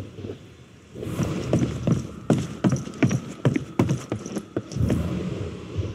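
Wooden boards crack and splinter.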